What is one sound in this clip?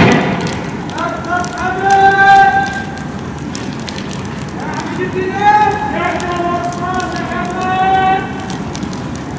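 Men shout in the distance.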